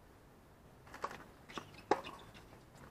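A tennis racket strikes a ball outdoors.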